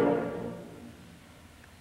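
A school band holds a final chord that quickly fades away.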